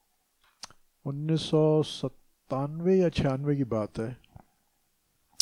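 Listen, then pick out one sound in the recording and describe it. An elderly man speaks calmly and closely into a headset microphone.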